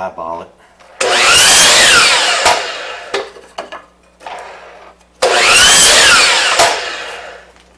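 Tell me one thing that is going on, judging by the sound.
A power miter saw whines up and cuts through wood.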